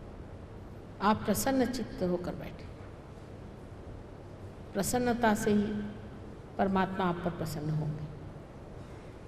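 A middle-aged woman speaks calmly into a microphone, with pauses.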